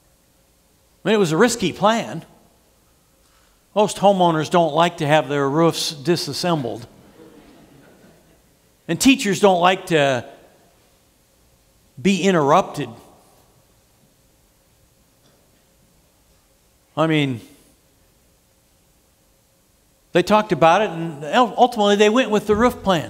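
A middle-aged man speaks with animation into a microphone, pausing often.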